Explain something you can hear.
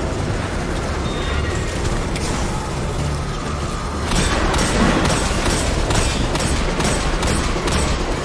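Gunfire bursts rapidly in a video game.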